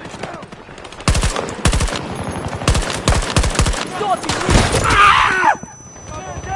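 Gunshots crack in sharp bursts.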